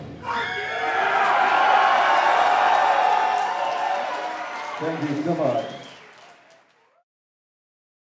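A drum kit is played loudly, then fades out.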